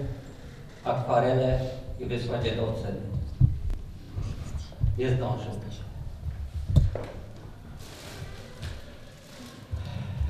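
A middle-aged man speaks calmly into a microphone through loudspeakers in an echoing hall.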